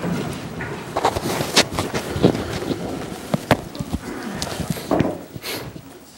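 Chairs creak and shuffle as a group of people stand up.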